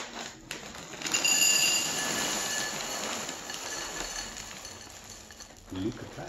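Cereal pours and rattles into a glass bowl.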